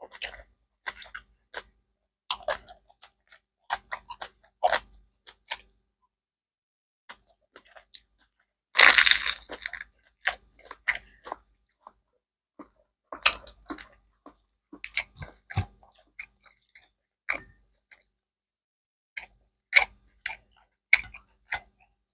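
A woman crunches loudly on crispy food close to a microphone.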